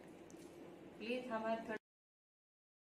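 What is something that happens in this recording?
A middle-aged woman speaks close to the microphone.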